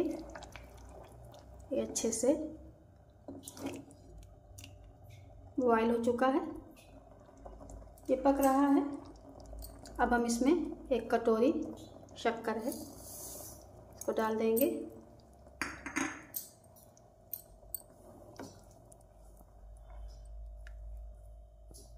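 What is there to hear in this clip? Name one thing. A silicone spatula stirs thick liquid in a steel pot.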